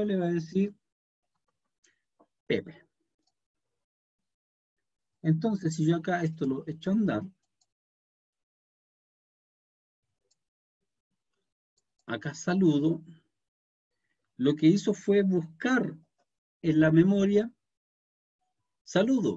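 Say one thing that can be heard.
A man speaks calmly through a microphone on an online call, in short bursts with pauses.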